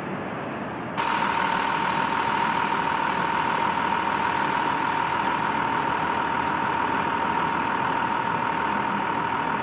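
A minibus engine idles close by with a steady hum.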